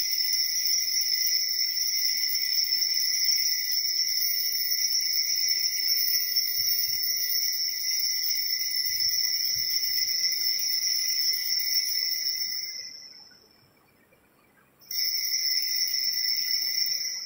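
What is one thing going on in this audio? A small hand bell jingles steadily.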